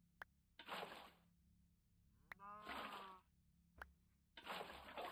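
Water splashes in short bursts.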